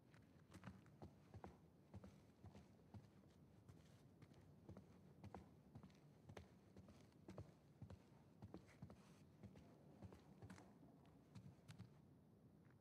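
Footsteps thud slowly and steadily on a wooden floor.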